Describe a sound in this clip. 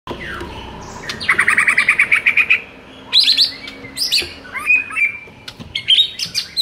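A songbird sings loud, rapid, varied phrases close by.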